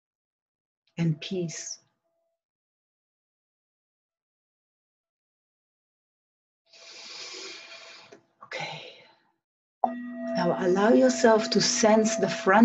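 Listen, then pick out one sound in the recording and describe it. A woman speaks calmly and softly, close by, in short phrases with long pauses.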